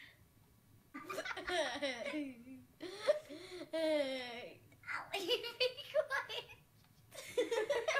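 Two young girls speak in turn, close by, with excitement.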